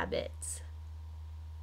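A woman talks briefly and cheerfully, close to a microphone.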